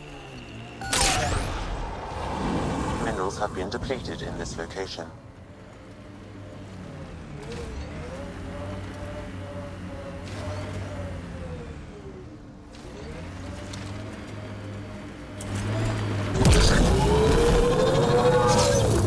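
Heavy wheels thump and crash as a vehicle lands on rough ground.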